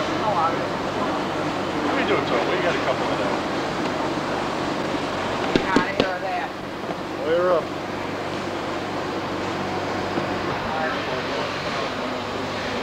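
Adult men and women talk with one another nearby.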